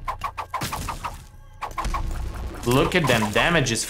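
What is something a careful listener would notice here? Rapid game shots pop and splash.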